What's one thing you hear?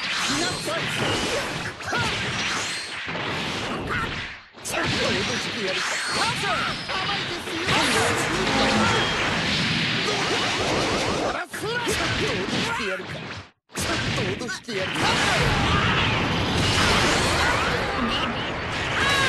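Energy blasts roar and crackle.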